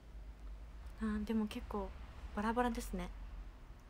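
A young woman speaks softly and briefly, close to a microphone.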